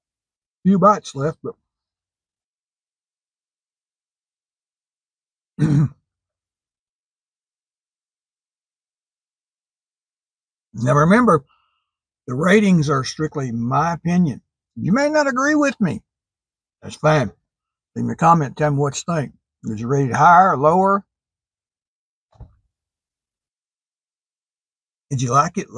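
An elderly man talks with animation.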